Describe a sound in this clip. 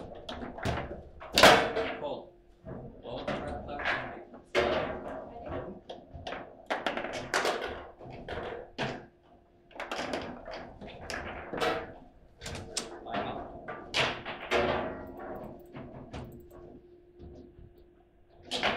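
Foosball rods clack and rattle as they spin and slide.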